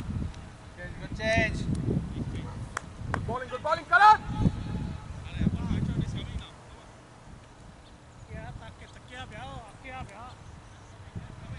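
Men call out across an open field at a distance.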